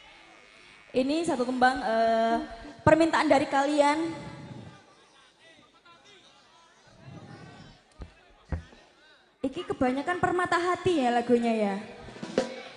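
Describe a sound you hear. A young woman sings into a microphone through loudspeakers outdoors.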